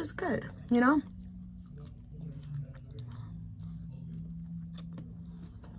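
A young woman chews food with soft, wet mouth sounds.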